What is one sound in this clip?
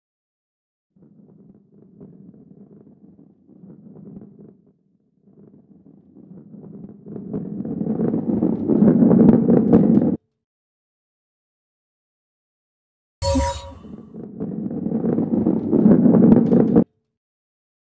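A ball rolls along a wooden track with a low, swelling rumble.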